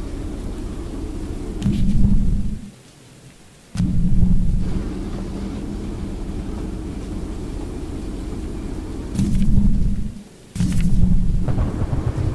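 A train engine rumbles low and steady while rolling along the tracks.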